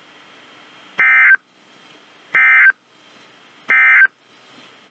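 A weather radio sounds three loud, shrill alarm beeps, evenly spaced.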